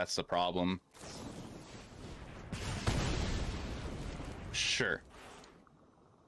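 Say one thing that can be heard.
A game spell effect whooshes and crackles.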